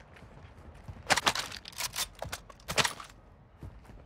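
A rifle's metal parts click and clack as it is handled.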